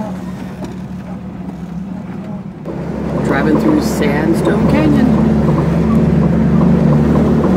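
An off-road vehicle's engine rumbles steadily.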